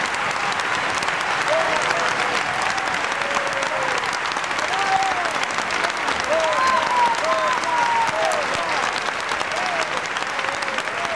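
Audience members whistle and cheer.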